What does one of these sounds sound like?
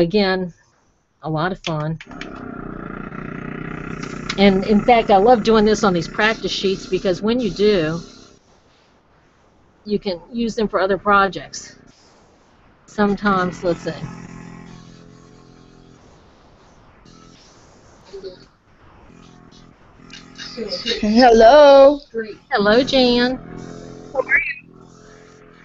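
A woman talks calmly over an online call.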